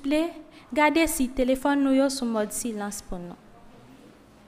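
A young woman speaks clearly into a microphone in a reverberant room.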